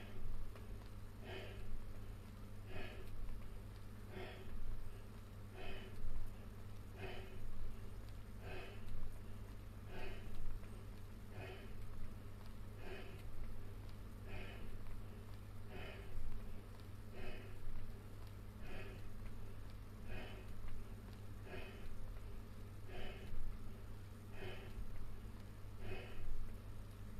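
A man exhales sharply close by, in a steady rhythm about once every second and a half.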